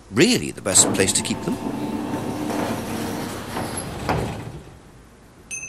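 A garage door rumbles as it rolls open.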